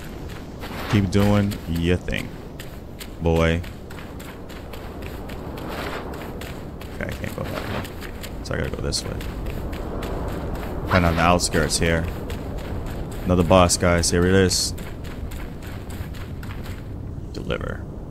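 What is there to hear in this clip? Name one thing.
Footsteps crunch over rocky ground.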